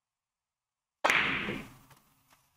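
A cue stick strikes a billiard ball with a sharp crack.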